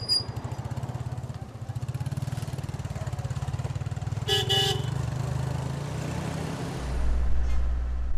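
A motorbike engine putters along at low speed.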